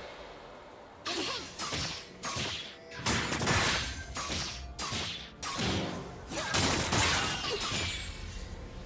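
Swords and blows clash in quick bursts.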